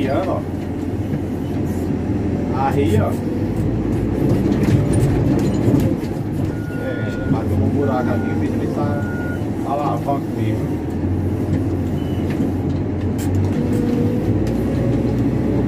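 A heavy diesel engine rumbles steadily from inside a machine's cab.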